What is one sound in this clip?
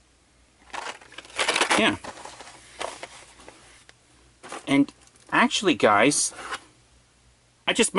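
Plastic toy packages crinkle as they are picked up and set down.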